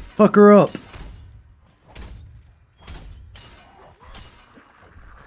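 A heavy weapon strikes a zombie with wet thuds.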